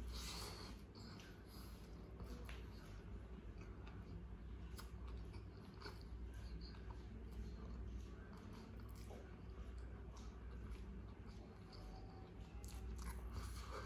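A man chews food with wet, smacking sounds close to the microphone.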